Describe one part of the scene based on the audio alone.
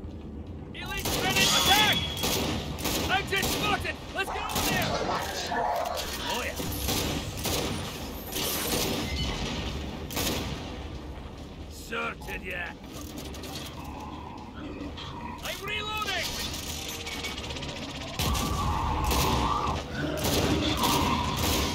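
A gun fires in sharp, repeated shots.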